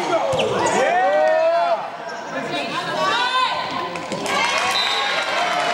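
Sneakers squeak sharply on a polished floor in a large echoing gym.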